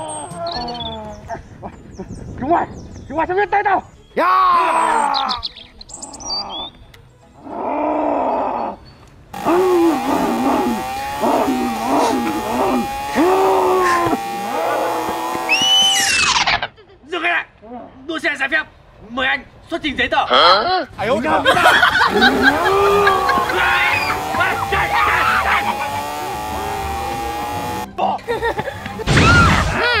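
Young women scream in fright outdoors.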